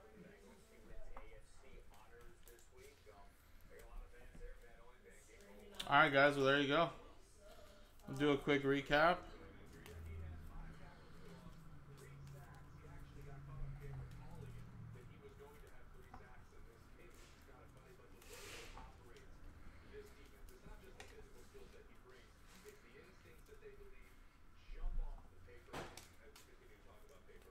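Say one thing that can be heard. Trading cards shuffle and flick between hands.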